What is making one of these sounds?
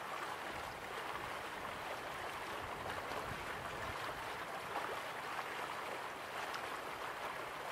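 Water laps gently against a shore.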